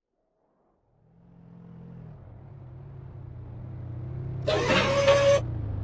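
A car engine hums far off and grows louder as it approaches.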